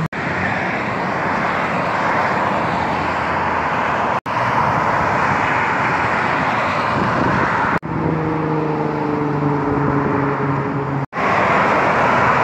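Steady traffic rushes past on a busy highway.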